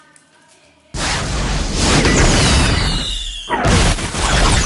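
A rocket roars through the air.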